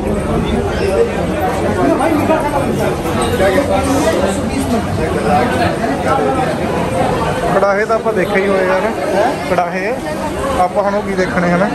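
A crowd of men talk and murmur all around, outdoors.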